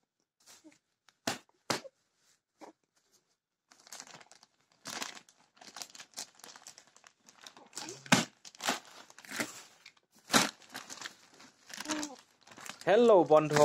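A plastic package crinkles and rustles as it is handled.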